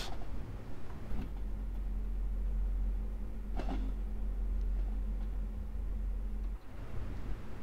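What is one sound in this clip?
A train's motor hums steadily.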